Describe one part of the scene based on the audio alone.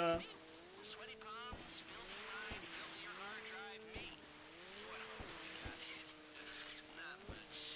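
A jet ski engine whines, rising and falling in pitch as it revs.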